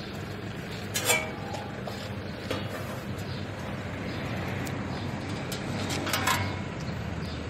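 Metal shovels clank down onto concrete.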